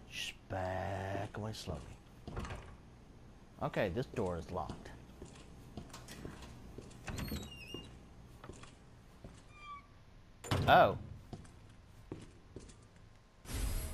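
Footsteps thud slowly on a wooden floor indoors.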